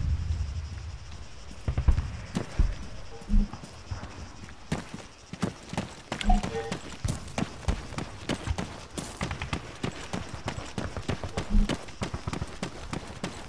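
Footsteps crunch on dry dirt and gravel at a walking pace.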